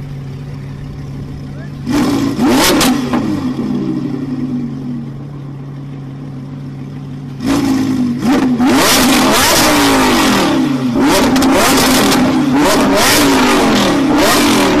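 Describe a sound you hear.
A sports car engine idles with a low steady rumble.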